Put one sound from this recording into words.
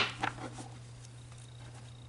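Playing cards rustle softly as they are shuffled by hand.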